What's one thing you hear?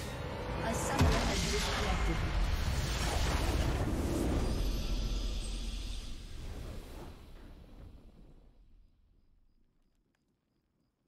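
A triumphant victory fanfare swells and then fades away.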